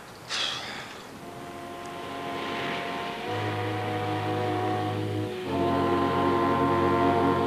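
Water splashes against a hull.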